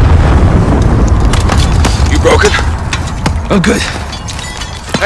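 An explosion booms and rumbles nearby.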